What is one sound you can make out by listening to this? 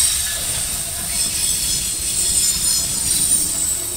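A diesel locomotive engine roars as it passes.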